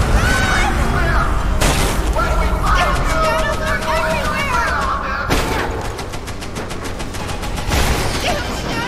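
Gunshots bang loudly several times.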